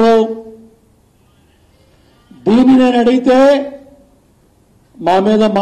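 A middle-aged man speaks emphatically into a microphone, with pauses.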